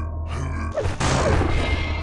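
An electric beam weapon crackles and hums.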